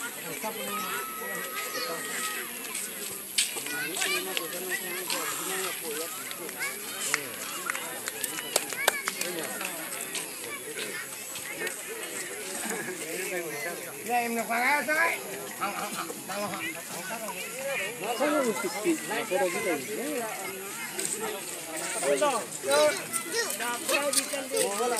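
A crowd of men talks and calls out nearby, outdoors.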